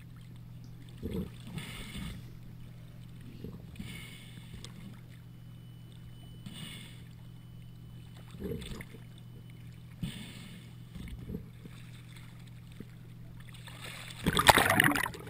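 Water sloshes and splashes against the microphone at the sea surface.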